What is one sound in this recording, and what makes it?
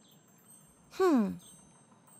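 A cartoon character makes a short, falling grumbling sound.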